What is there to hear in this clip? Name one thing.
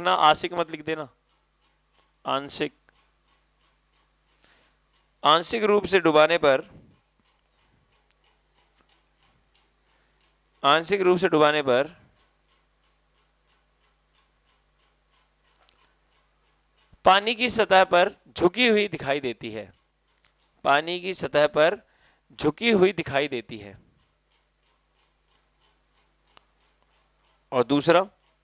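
A young man speaks calmly into a headset microphone, in short bursts with pauses.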